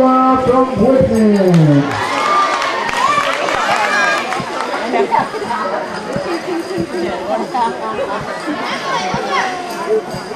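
A crowd of children chatters loudly in a large echoing hall.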